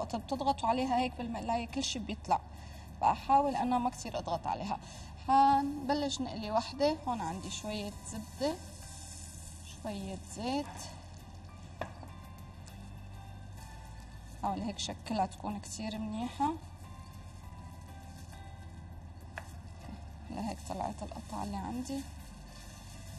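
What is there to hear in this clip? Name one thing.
A woman talks calmly into a microphone, pausing now and then.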